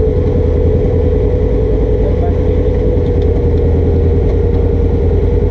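An off-road vehicle's engine drones loudly and steadily close by.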